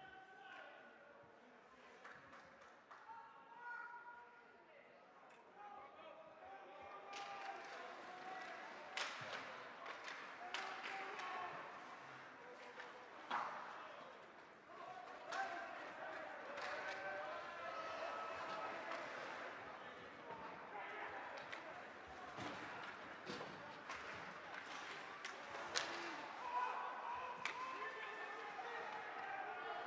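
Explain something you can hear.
A crowd of spectators cheers and chatters in an echoing rink.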